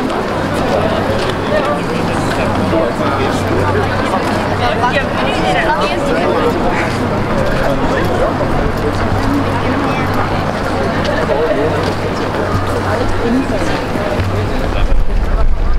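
Many people chat and talk, outdoors in an open space.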